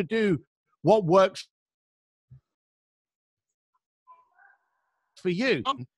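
A middle-aged man speaks with animation into a microphone, heard over an online call.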